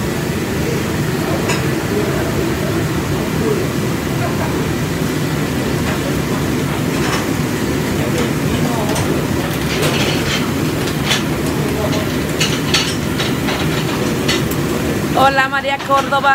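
Food sizzles loudly on a hot griddle.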